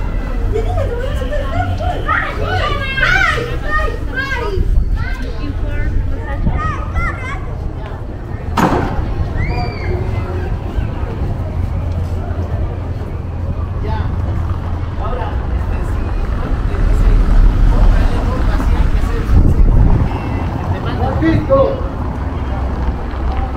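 A crowd murmurs in the distance on an open square.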